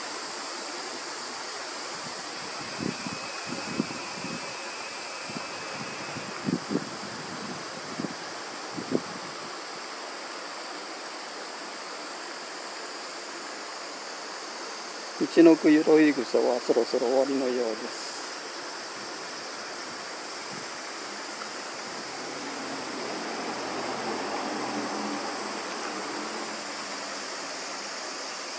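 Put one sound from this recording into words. Leaves rustle softly in a light breeze.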